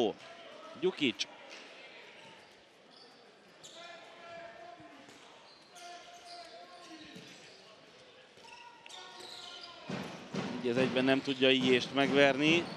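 A handball bounces on a hard floor.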